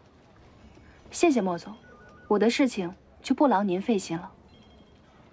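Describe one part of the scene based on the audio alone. A young woman answers coolly, close by.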